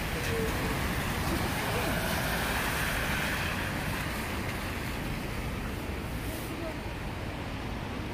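Cars pass by on a road.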